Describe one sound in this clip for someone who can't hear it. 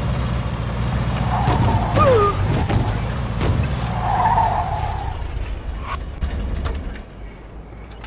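An old pickup truck engine rumbles as the truck drives along.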